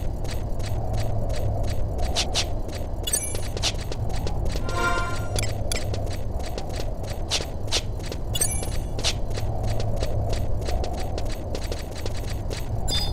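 Footsteps patter quickly on a hard stone floor.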